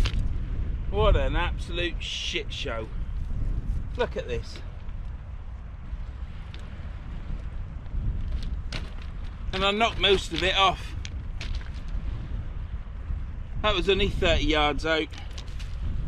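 A man speaks calmly nearby in short bursts, outdoors.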